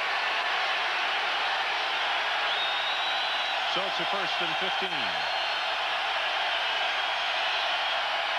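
A large crowd roars steadily outdoors.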